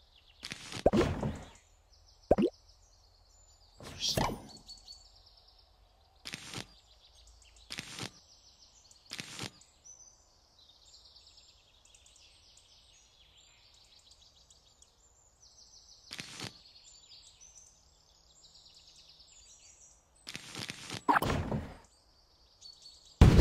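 Game menu sounds click and chime as items are picked.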